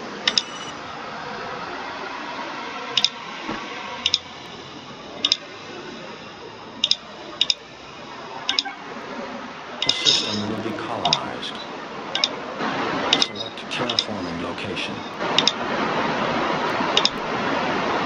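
Short electronic beeps sound again and again as game menus are clicked.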